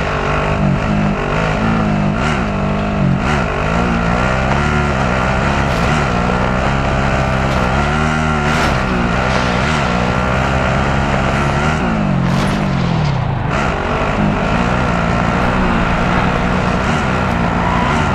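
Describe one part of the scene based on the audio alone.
A vehicle engine roars and revs up and down as it drives over rough ground.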